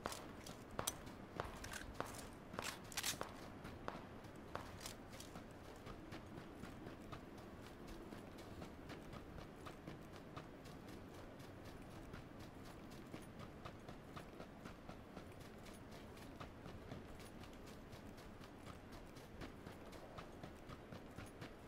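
Footsteps rustle quickly through dry grass.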